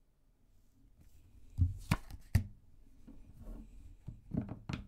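Cards slide and tap on a wooden table.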